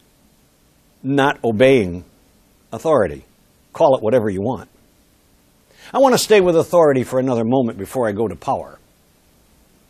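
An older man speaks with animation, as if lecturing.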